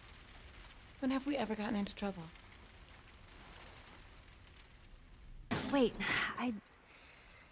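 A young woman speaks softly and warmly, close by.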